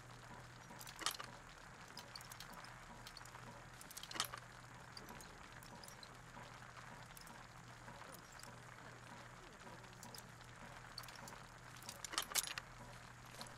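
Metal lock picks click as pins set inside a lock.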